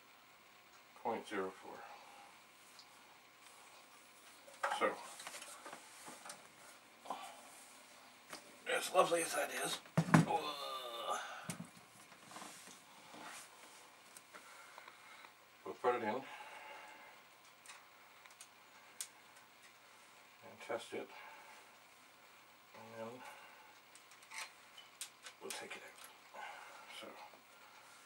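An elderly man talks in a calm, chatty way.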